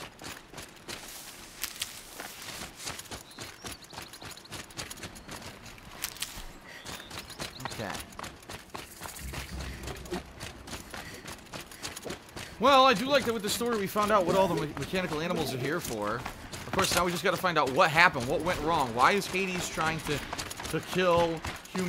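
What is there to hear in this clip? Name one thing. Footsteps run over dry ground and grass.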